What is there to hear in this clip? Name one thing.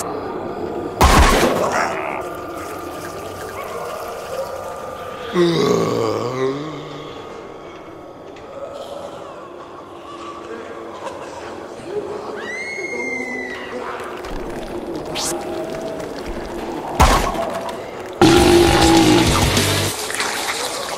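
A bowling ball crashes into a crowd of figures with a loud clatter.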